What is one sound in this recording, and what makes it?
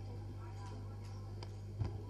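A woman speaks into a microphone, heard through loudspeakers.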